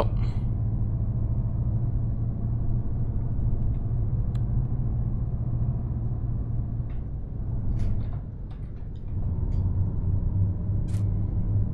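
A truck engine drones low and steady, easing off briefly before picking up again.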